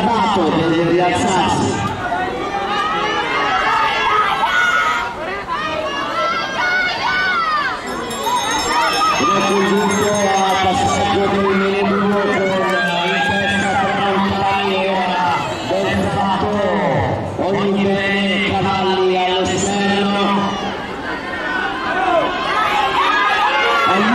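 A crowd of spectators cheers outdoors.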